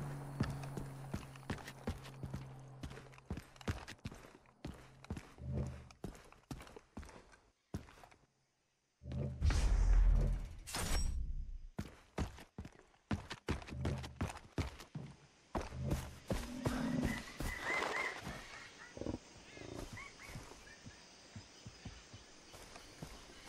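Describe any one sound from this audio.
Footsteps tread on hard ground and then through grass.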